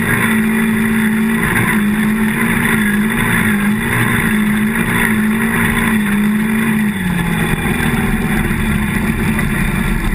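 An ATV engine revs up and down while riding on a dirt trail.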